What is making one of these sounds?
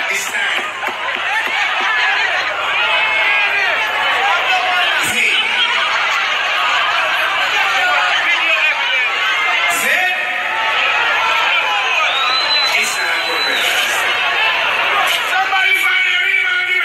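A large crowd cheers and shouts loudly in the open air.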